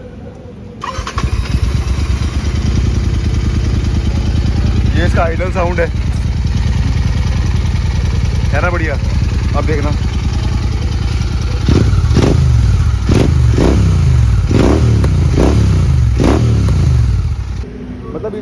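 A motorcycle engine idles with a deep, steady rumble.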